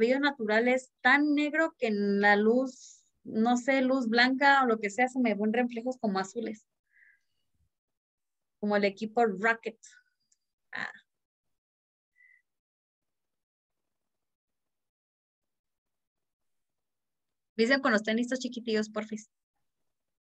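A young woman speaks calmly through an online call, pausing between phrases.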